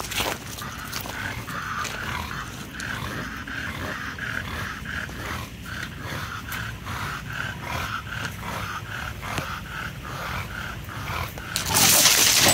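A dog pants quickly and steadily close by.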